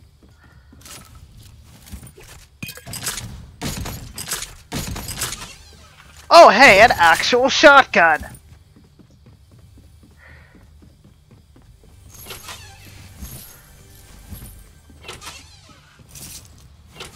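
Footsteps thump across a wooden floor.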